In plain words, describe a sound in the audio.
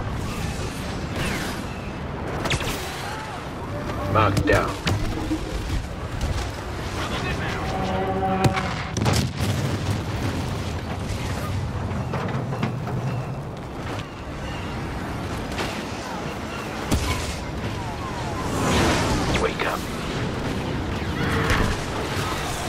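Blaster shots zap and crack in quick bursts.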